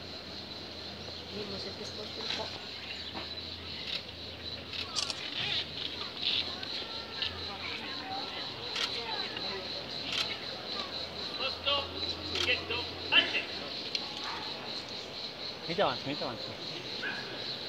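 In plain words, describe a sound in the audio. A small crowd of men and women chat and call out nearby outdoors.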